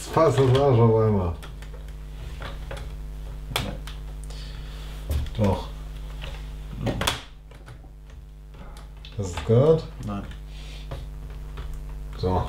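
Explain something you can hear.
Plastic bricks click and rattle as hands handle a model.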